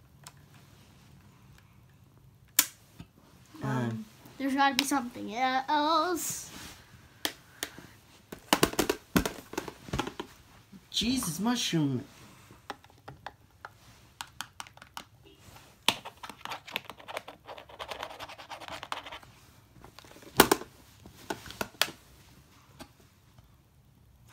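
A plastic toy clicks and knocks as it is handled.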